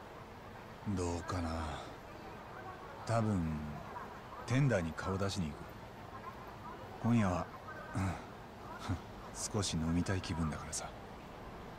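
A man answers in a low, relaxed voice close by.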